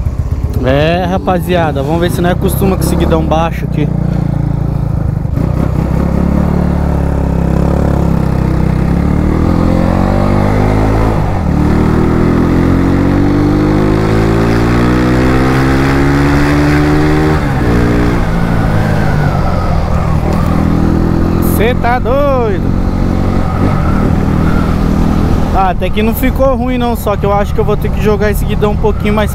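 A motorcycle engine rumbles up close, rising and falling in pitch as it speeds up and shifts gears.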